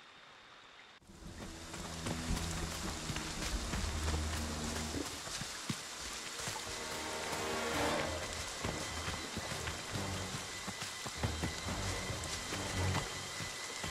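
Footsteps crunch and rustle through dry leaves and undergrowth.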